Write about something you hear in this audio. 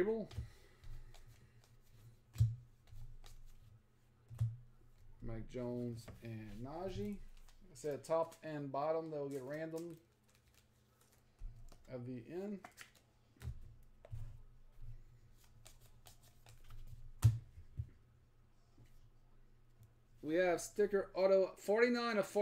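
Trading cards rustle and click as hands handle them.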